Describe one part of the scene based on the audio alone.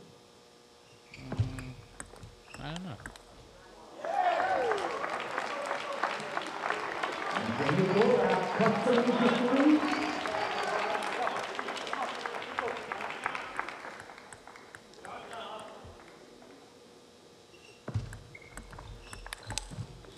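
A ping-pong ball clicks back and forth on paddles and a table.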